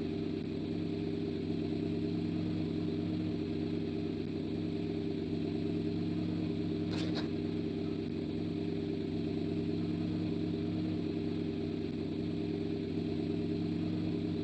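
A vehicle engine hums steadily at low speed.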